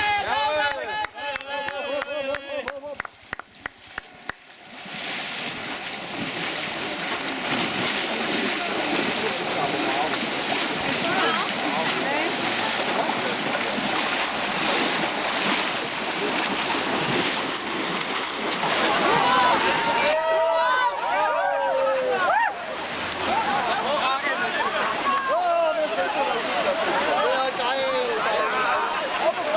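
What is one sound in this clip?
Runners splash through muddy water.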